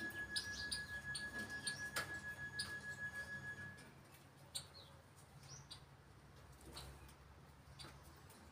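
A parrot chirps and whistles in short high calls.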